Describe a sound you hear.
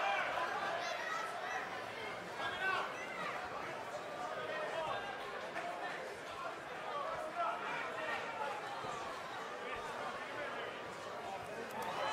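A large crowd cheers loudly in an arena.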